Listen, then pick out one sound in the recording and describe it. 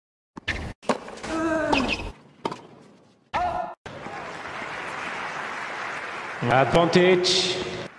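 A tennis racket strikes a ball on a hard court.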